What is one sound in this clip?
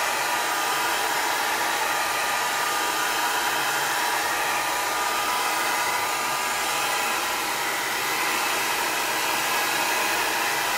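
A hair dryer blows loudly and steadily close by.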